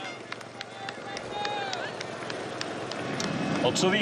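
A roadside crowd cheers and shouts.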